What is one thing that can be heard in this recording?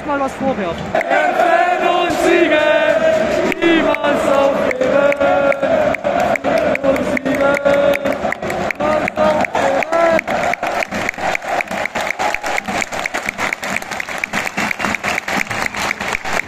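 A stadium crowd claps in a steady, quickening rhythm.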